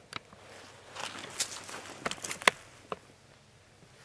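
Footsteps crunch on dry leaves and gravel close by.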